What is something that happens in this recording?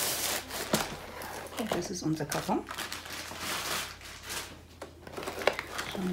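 A cardboard box scrapes and taps as it is handled.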